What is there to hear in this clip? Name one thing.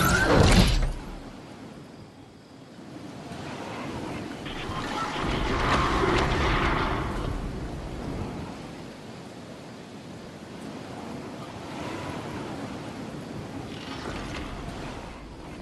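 Wind flutters through a glider's canopy as it drifts down.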